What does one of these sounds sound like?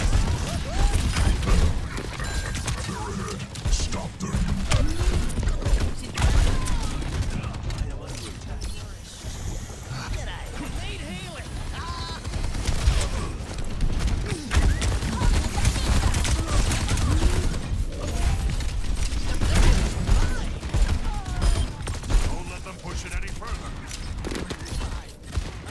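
Gunfire from a video game crackles in rapid bursts.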